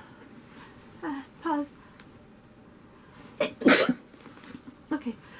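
A young woman speaks close by in short bursts.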